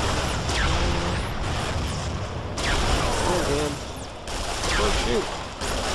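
A rifle fires single heavy shots.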